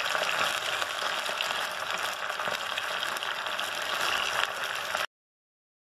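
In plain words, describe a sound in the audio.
Hot oil sizzles and crackles steadily in a frying pan.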